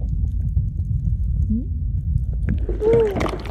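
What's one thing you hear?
Water rumbles in a low, muffled way underwater.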